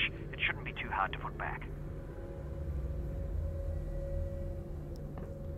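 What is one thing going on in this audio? A machine hums low and steady.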